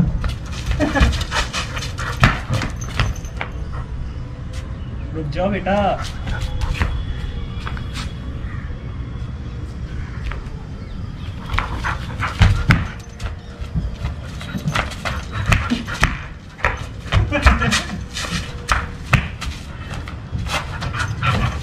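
Footsteps scuff and patter on a concrete surface.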